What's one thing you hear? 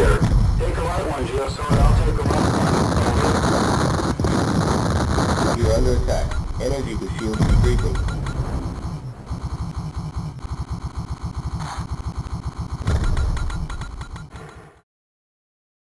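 Laser shots fire rapidly in a space shooting game.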